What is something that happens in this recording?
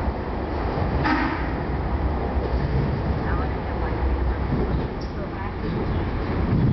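Train wheels squeal on the rails.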